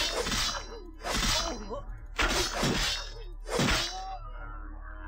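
Loud whooshing slashes and impacts burst out in quick succession.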